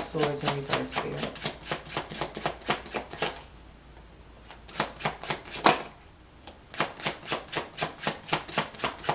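Playing cards are shuffled by hand with quick, even clicks.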